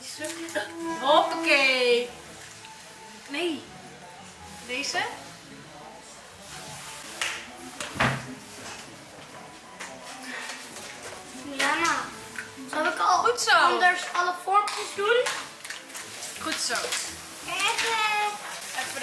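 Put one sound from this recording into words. A little girl speaks in a high, excited voice nearby.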